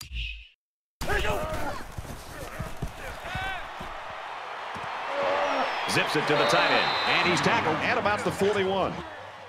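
A large stadium crowd cheers and roars, swelling louder.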